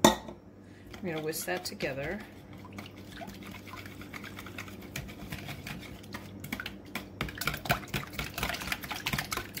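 A whisk clatters and beats in a bowl.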